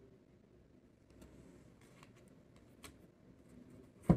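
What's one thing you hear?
A deck of cards rustles as it is shuffled.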